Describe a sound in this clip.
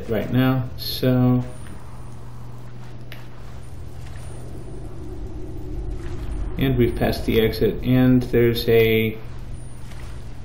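Water splashes softly as a swimmer paddles through it.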